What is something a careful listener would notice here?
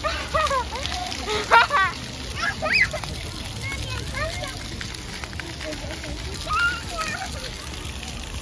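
A young girl squeals and talks excitedly close by.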